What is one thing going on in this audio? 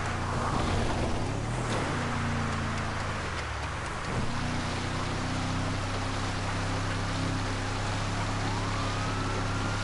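Tyres crunch and hiss over dirt and gravel.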